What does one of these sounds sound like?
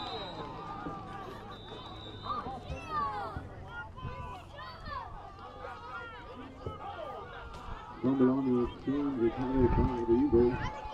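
Young men shout and chatter close by outdoors.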